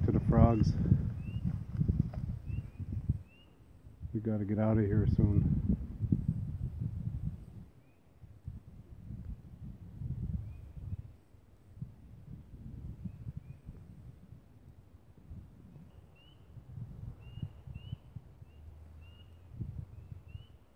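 Wind blows outdoors, rumbling low and gusting.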